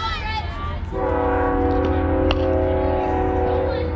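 A metal bat cracks against a softball.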